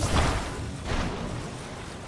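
Water splashes and sprays noisily.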